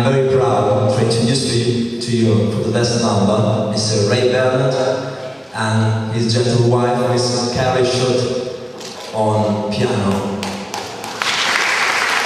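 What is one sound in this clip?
A rock band plays electric guitars and drums in a large echoing hall.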